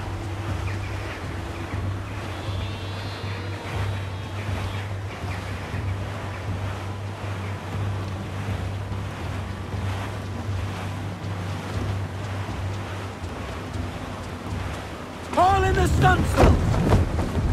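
Water rushes steadily against a sailing ship's hull.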